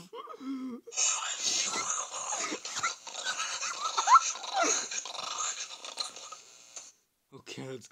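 A cartoon duck squawks and quacks excitedly.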